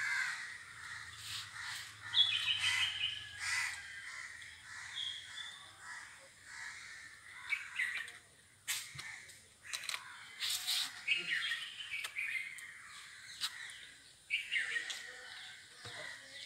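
A plastic bottle scrapes on stone.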